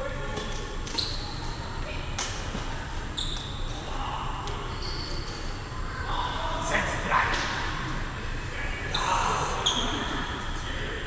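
Sports shoes squeak sharply on a hall floor.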